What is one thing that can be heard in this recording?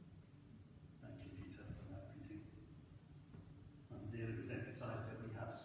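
A man reads aloud calmly in a large echoing hall.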